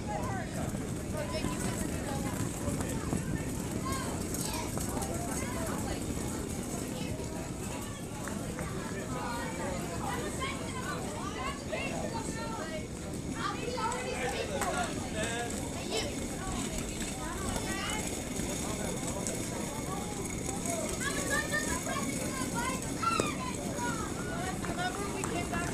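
People talk and call out nearby outdoors.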